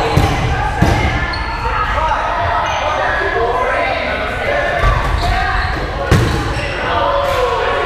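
Young adults shout and call out across an echoing gym.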